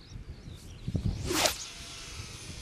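A long pole whooshes swiftly through the air.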